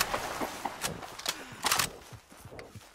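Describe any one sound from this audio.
A rifle's lever clicks and metal cartridges clack as the rifle is loaded.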